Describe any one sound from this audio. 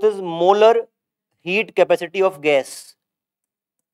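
A man speaks clearly into a microphone.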